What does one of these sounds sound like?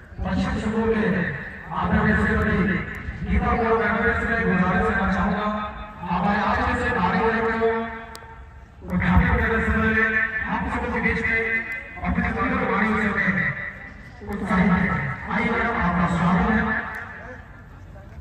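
A man speaks loudly through a microphone over a loudspeaker outdoors.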